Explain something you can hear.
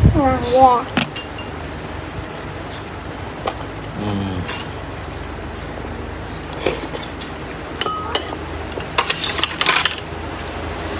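Metal utensils clink against each other.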